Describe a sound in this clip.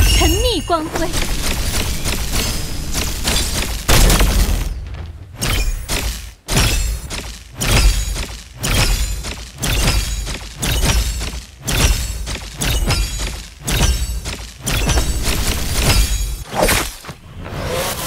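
Magic attacks whoosh and crackle in quick bursts.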